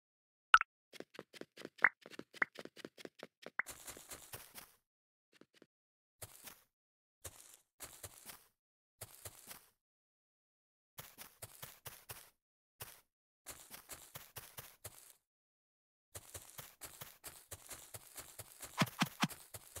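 Quick footsteps tap on hard ground in short bursts.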